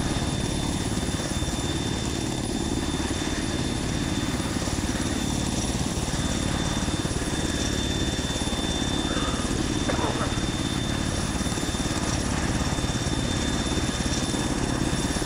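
Rotor wash churns and hisses over the water.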